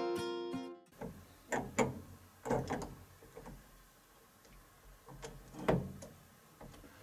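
Metal drum hardware clinks and rattles.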